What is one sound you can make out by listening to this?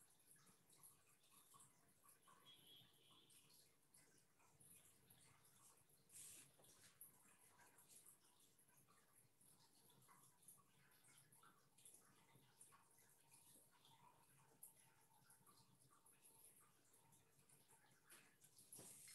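A brush dabs and brushes softly on paper.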